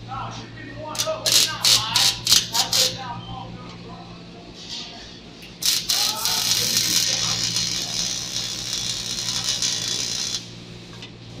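An electric welding arc crackles and sizzles in bursts.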